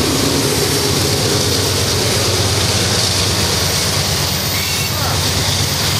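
Freight car wheels roll and clatter along steel rails.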